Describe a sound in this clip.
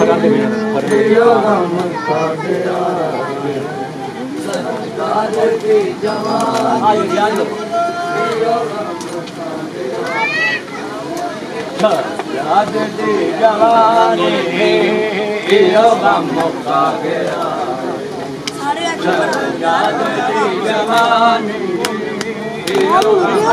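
A crowd of men talk and chant loudly all around.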